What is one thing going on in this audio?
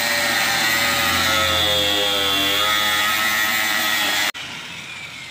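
An angle grinder whines loudly, grinding at close range.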